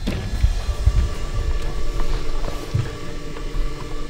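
A wooden door creaks as a hand pushes it open.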